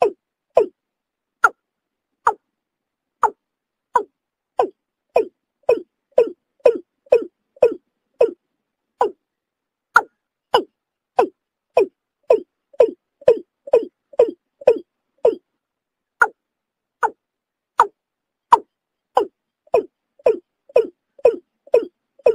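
A bird gives short, sharp calls over and over.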